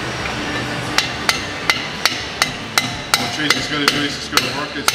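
A hammer strikes metal in quick, regular blows.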